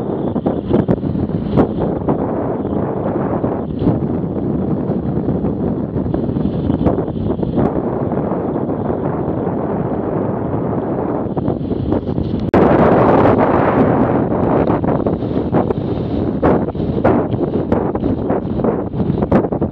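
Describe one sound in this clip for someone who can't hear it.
Wind buffets and roars against the microphone of a moving motorcycle.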